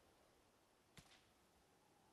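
A bow twangs as an arrow is shot.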